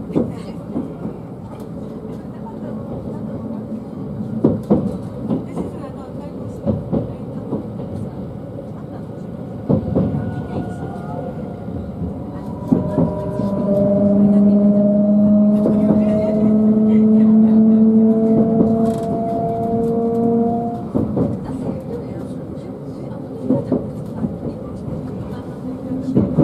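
A train rumbles and clatters steadily along the tracks, heard from inside.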